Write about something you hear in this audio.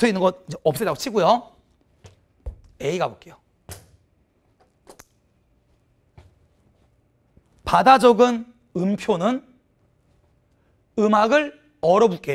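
A young man lectures with animation into a close microphone, pausing between phrases.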